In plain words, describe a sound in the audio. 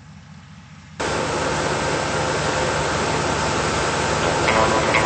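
A helicopter's engine roars loudly up close as its rotor blades whir.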